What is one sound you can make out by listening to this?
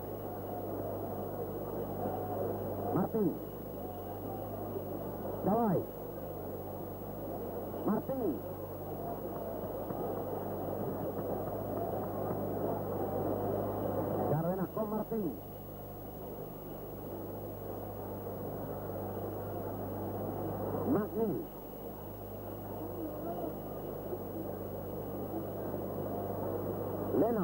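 A large crowd roars in a stadium.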